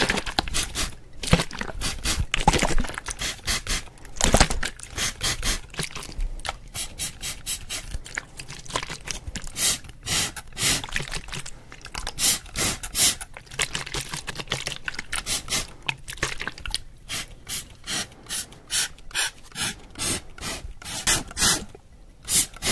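Hands rustle and tap close to a microphone.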